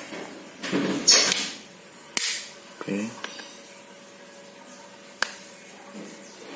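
Plastic clicks and snaps as a phone's back cover is pressed into place.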